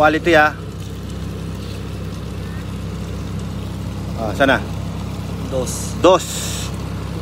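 A small pump motor hums steadily.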